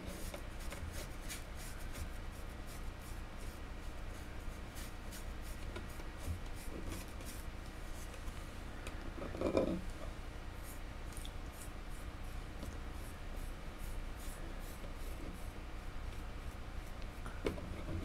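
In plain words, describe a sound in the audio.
An airbrush hisses as it sprays paint.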